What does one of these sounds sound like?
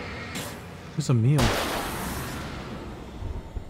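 A powerful flashlight beam blasts with a loud roaring hiss.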